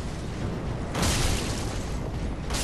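A fireball explodes with a roaring whoosh.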